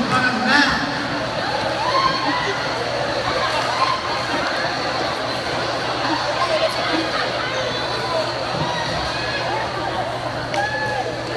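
A large crowd chatters and cheers loudly in a big echoing hall.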